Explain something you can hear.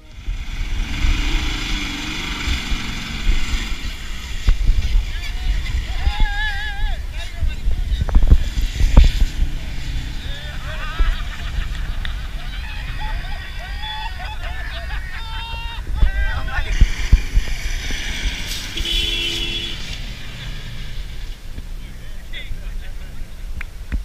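A pickup truck engine revs and strains as it climbs a sandy slope.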